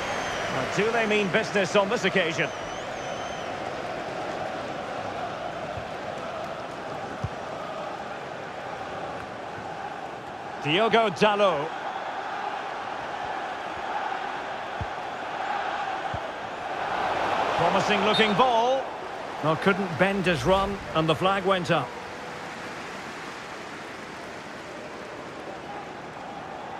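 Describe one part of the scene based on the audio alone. A large stadium crowd roars and murmurs steadily, swelling now and then.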